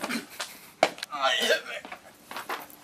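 A young man cries out and laughs.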